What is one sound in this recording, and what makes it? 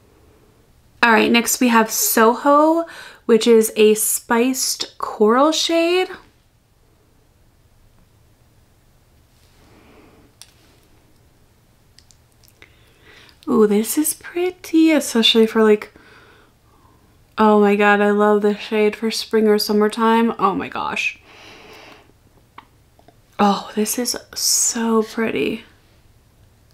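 A young woman talks calmly and cheerfully close to a microphone.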